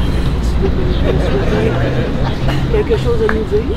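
A woman speaks softly nearby.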